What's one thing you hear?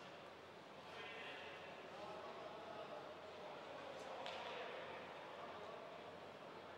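A man shouts loudly across an echoing ice rink.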